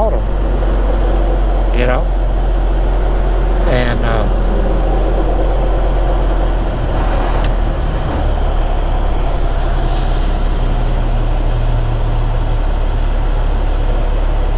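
Wind rushes past a moving truck.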